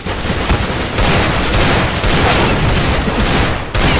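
A pistol fires in quick bursts of shots.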